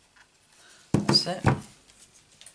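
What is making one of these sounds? A paper punch snaps shut with a sharp click.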